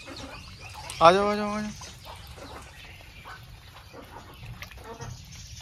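Fish splash and slurp at the water's surface.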